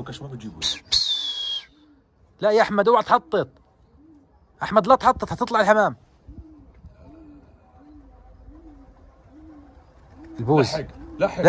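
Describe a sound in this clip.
Pigeons' wings flap loudly.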